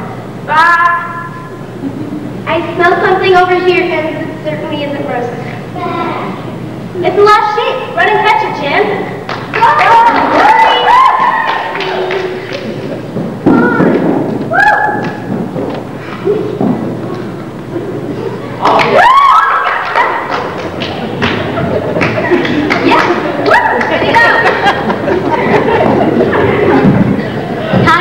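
Children speak and call out in a large echoing hall.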